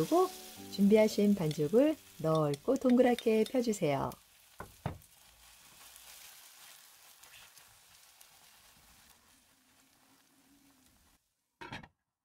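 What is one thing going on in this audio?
Oil sizzles softly in a frying pan.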